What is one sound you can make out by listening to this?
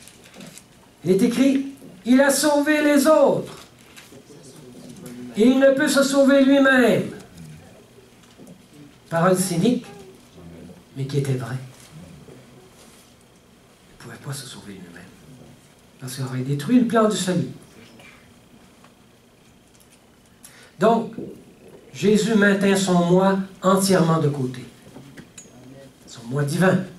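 An older man speaks calmly into a headset microphone, with pauses between phrases.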